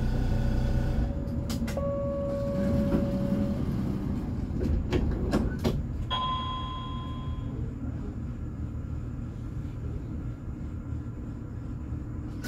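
A truck engine drones as the truck drives closer.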